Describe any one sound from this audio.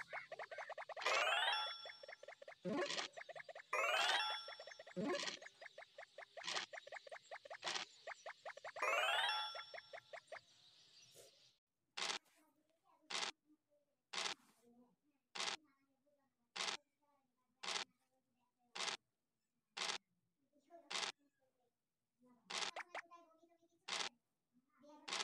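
A game die rattles as it rolls.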